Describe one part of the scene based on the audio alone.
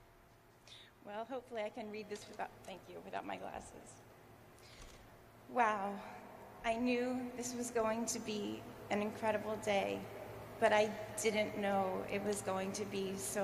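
A woman speaks warmly into a microphone over a loudspeaker.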